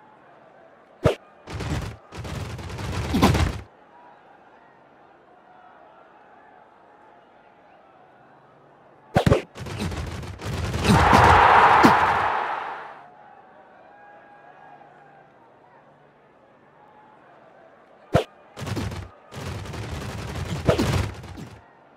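Chiptune game sound effects thump and crash in short bursts.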